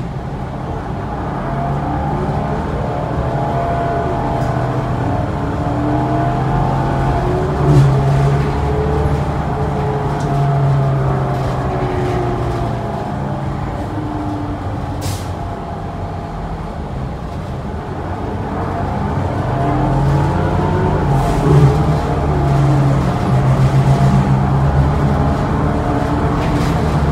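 A bus engine hums and whines as the bus drives along, rising and falling with speed.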